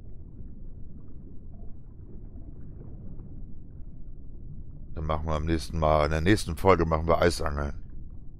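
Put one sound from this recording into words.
Water rumbles softly and dully, as if heard from underwater.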